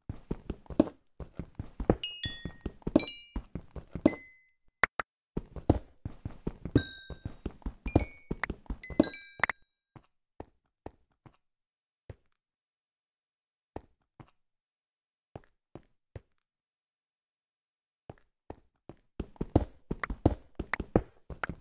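A pickaxe chips rapidly at stone blocks, which crack and break.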